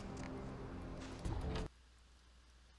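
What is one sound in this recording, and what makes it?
A heavy door handle clicks and the door opens.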